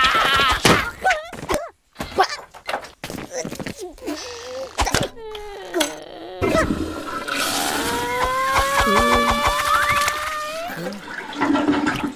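A cartoon creature cries out in a high, squeaky voice.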